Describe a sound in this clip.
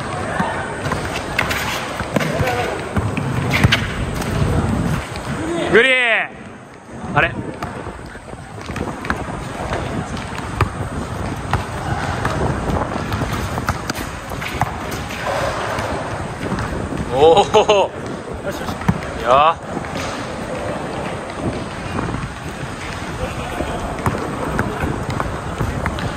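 A basketball bounces on hard pavement in quick dribbles.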